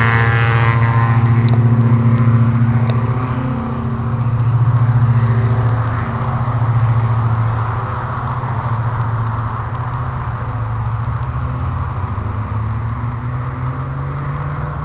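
A small car's engine revs hard as it races around a course, rising and falling in pitch.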